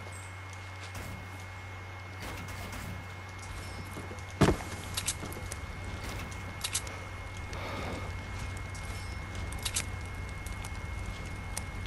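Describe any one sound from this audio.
Building pieces snap into place with quick clicks.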